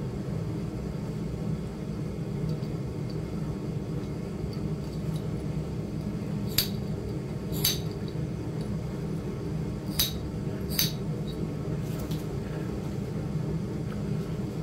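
A metal pick scrapes against stone.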